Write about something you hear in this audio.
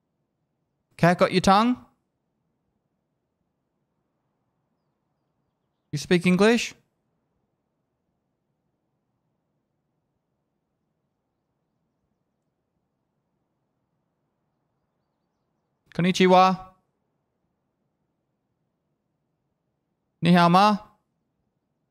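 A middle-aged man speaks in short bursts, close to a microphone.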